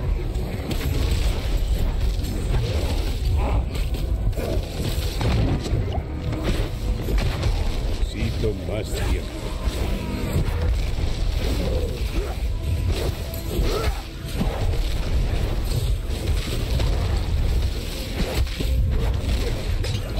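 Game combat effects crackle and boom.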